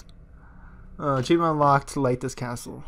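A man speaks calmly in a deep voice.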